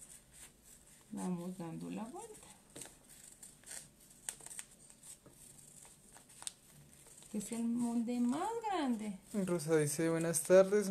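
Scissors snip through paper and fabric.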